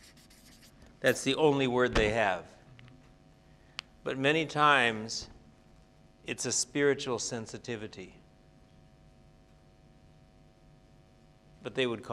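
An older man speaks calmly and clearly, close by, in short phrases with pauses.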